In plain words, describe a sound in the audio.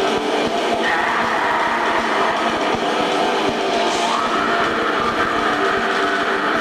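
A rock band plays loudly through amplifiers, heard from the crowd.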